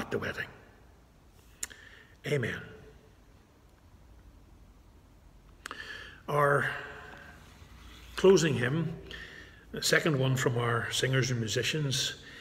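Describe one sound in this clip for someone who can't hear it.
A middle-aged man speaks calmly and close up, with pauses.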